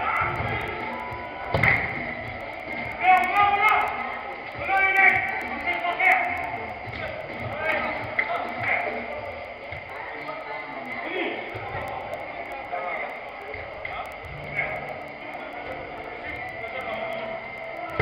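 Men shout to each other across a large echoing indoor hall.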